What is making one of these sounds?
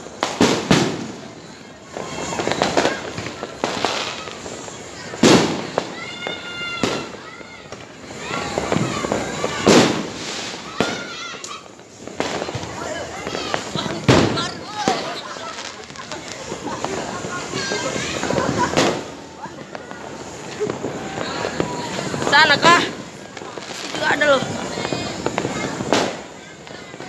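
Fireworks bang loudly outdoors, now and then.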